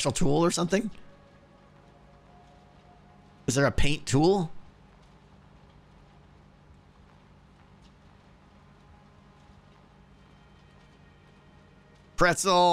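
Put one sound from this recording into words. A man speaks briefly and expressively into a close microphone, with long pauses.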